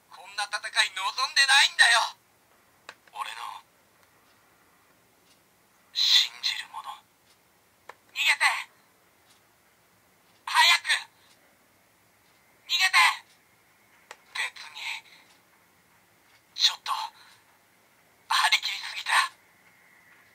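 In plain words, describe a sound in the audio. A toy belt plays short bursts of electronic sounds through a small tinny speaker.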